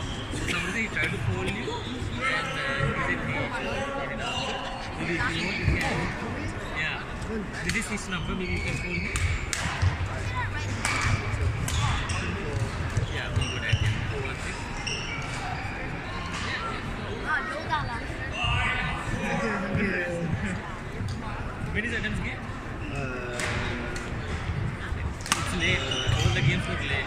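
Players' shoes squeak on the court floor.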